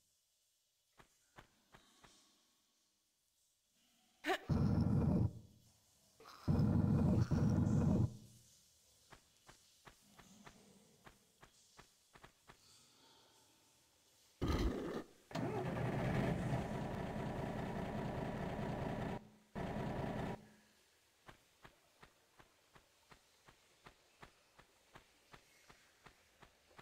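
Footsteps tap on a hard floor at a steady walking pace.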